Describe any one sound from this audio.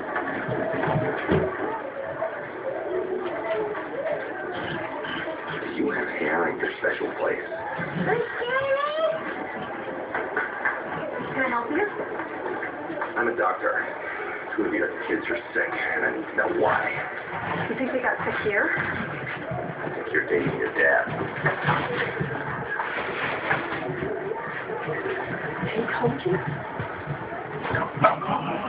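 Dogs' paws scuffle on a rug.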